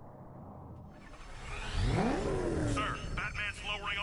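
A car engine roars and revs up.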